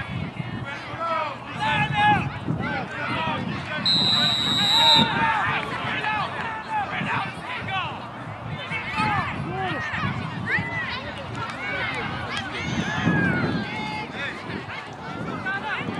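Young players call out and chatter across an open field outdoors.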